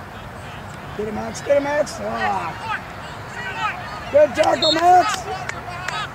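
Adult spectators shout encouragement from the sideline.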